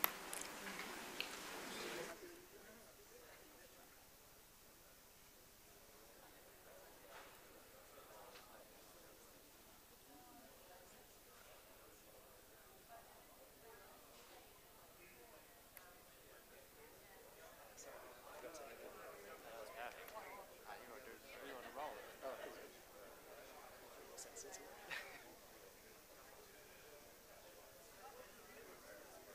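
Several people chat at a distance in a room.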